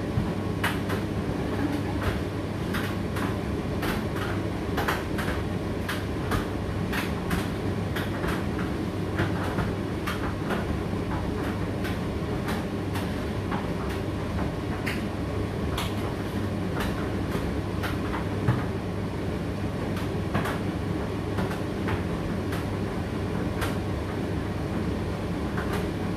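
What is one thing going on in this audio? A condenser tumble dryer hums as its drum turns.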